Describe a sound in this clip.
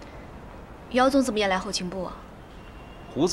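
A young woman asks a question calmly, close by.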